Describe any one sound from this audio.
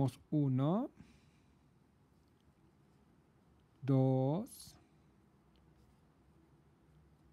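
A crochet hook softly rustles and pulls yarn through stitches.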